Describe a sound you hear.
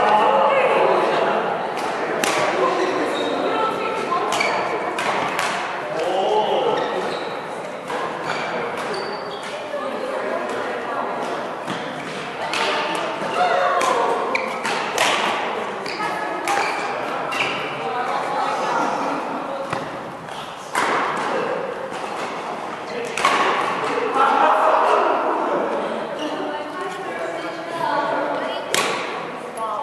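Badminton rackets smack a shuttlecock back and forth in an echoing hall.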